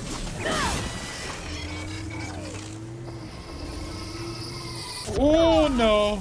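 Electric crackles and zaps burst in a game.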